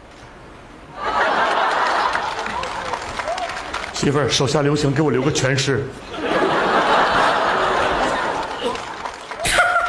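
An audience laughs and applauds loudly.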